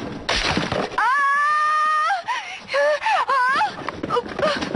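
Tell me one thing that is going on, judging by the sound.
A young man screams loudly.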